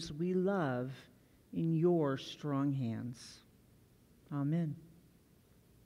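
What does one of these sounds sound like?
An older woman reads aloud calmly into a microphone.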